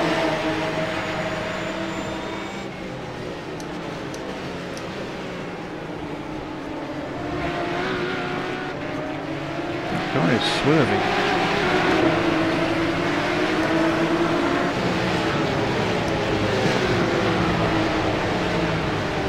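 Racing car engines roar and whine, rising and falling as they shift gears.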